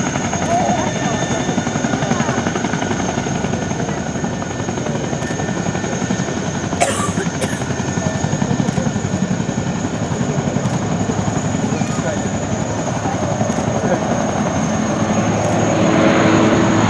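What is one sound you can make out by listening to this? A propeller plane's engines drone steadily overhead, growing louder as it approaches.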